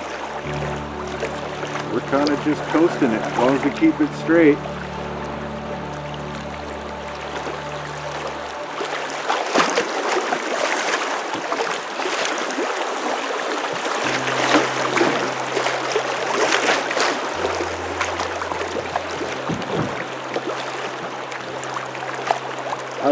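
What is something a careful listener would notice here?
A fast river rushes and churns.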